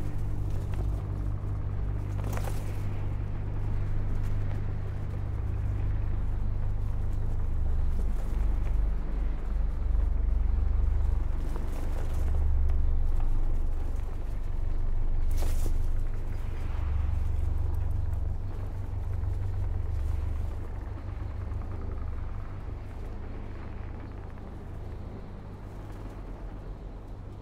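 A deep mechanical hum drones steadily.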